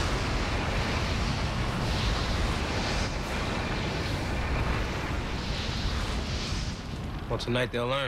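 A flamethrower roars loudly.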